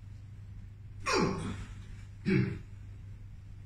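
A woman groans loudly close by.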